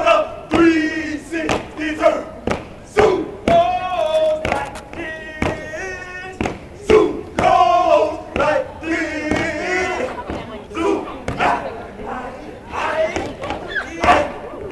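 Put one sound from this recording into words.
Young men chant loudly in unison outdoors.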